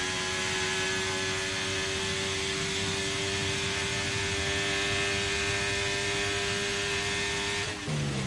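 A racing car engine screams at high speed, holding a steady pitch.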